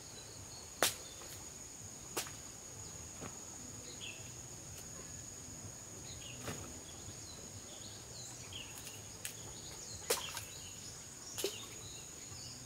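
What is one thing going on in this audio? Fruit snaps off as it is cut from a tree branch.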